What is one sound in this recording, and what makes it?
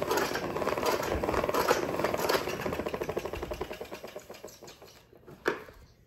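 A floor cleaner hums and rattles close by, then fades away.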